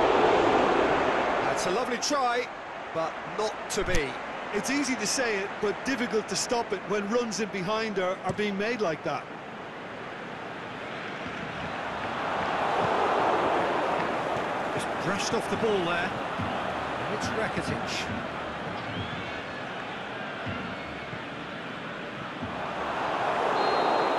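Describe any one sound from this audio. A stadium crowd roars and murmurs steadily, swelling now and then.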